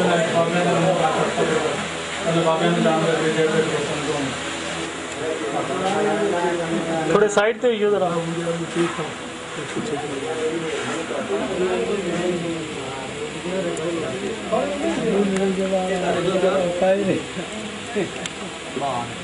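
Several men talk close by.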